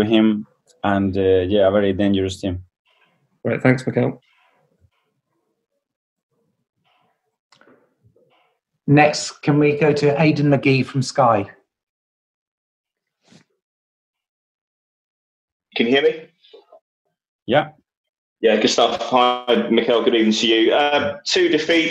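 A man speaks calmly into a microphone, heard over an online call, with pauses.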